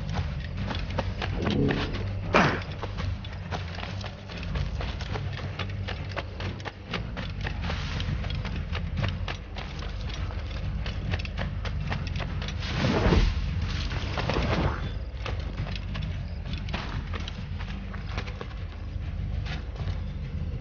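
Footsteps patter quickly through grass and undergrowth.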